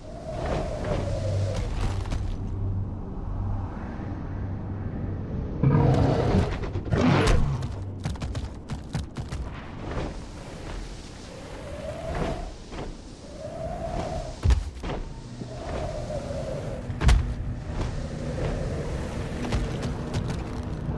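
Large leathery wings flap with heavy whooshing beats.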